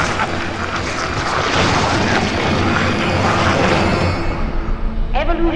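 Slimy tentacles writhe and squelch loudly.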